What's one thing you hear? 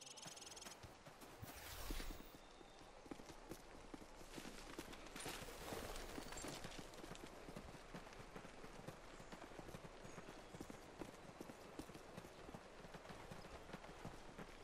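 Footsteps crunch steadily over grass and dirt.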